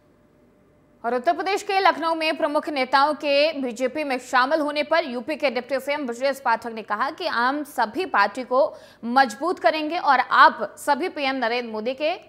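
A young woman reads out the news clearly and briskly into a microphone.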